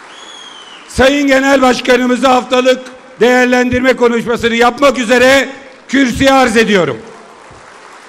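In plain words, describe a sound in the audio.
A large crowd chants loudly in unison in a large echoing hall.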